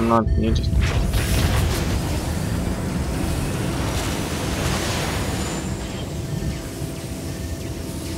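Heavy explosions rumble deeply and continuously.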